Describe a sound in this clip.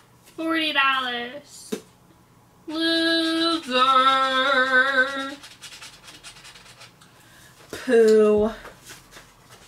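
A young woman speaks nearby in a drawn-out, sing-song voice.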